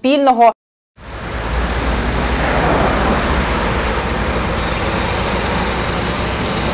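Cars and vans drive past on a road.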